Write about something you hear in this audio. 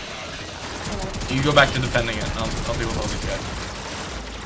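Rapid gunfire rattles with bright electronic zaps.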